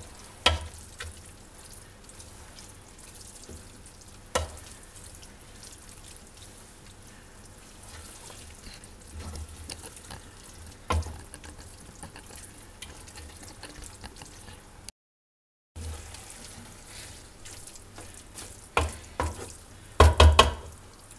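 A wooden spoon knocks against a metal pot.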